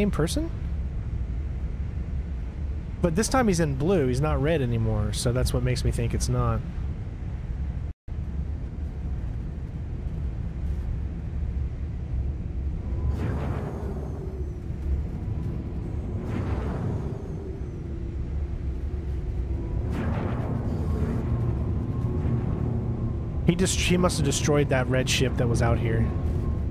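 A spaceship engine hums low and steadily.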